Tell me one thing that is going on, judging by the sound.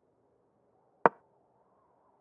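A single sharp click sounds as a chess piece is moved.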